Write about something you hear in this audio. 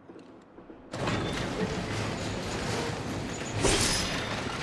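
A sword strikes a wooden crate, which breaks apart with a loud crash.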